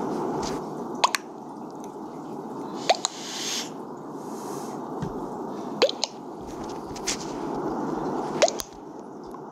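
A short electronic chime sounds several times.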